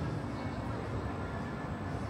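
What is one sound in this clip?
Footsteps pass close by on paving.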